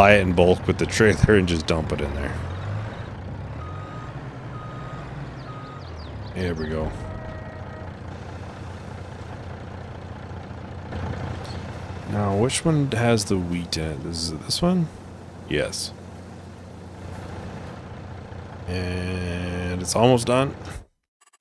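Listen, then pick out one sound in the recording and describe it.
A truck engine idles with a low, steady rumble.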